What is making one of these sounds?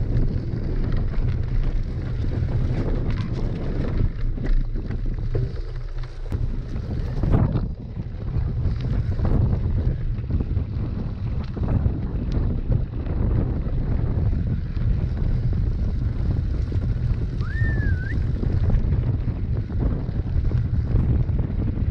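Bicycle tyres rattle and rumble over a bumpy dirt trail.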